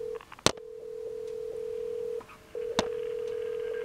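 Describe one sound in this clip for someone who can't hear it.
A telephone handset knocks sharply against something.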